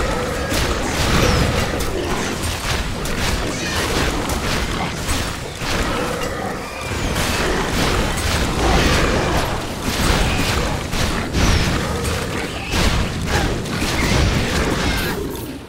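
Magic spells crackle and burst in rapid succession.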